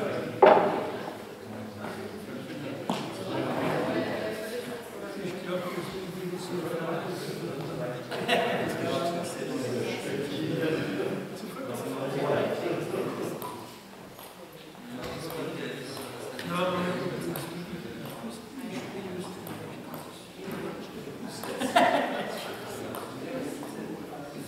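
Several men talk casually at a distance in an echoing hall.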